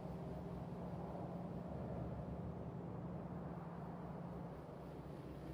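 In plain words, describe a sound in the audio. Factory machines hum and whir steadily.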